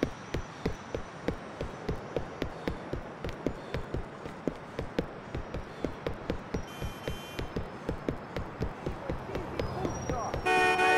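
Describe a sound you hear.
Quick footsteps run steadily on pavement.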